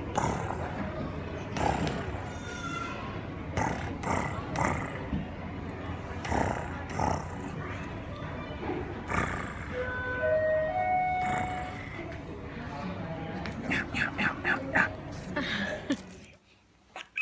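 A baby girl giggles and squeals with delight.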